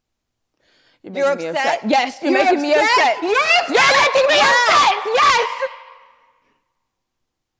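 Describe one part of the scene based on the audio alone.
A young woman shouts angrily close by.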